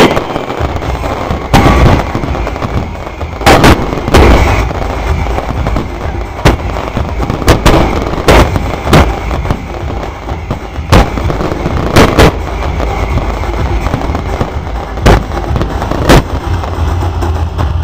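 Fireworks crackle and hiss steadily.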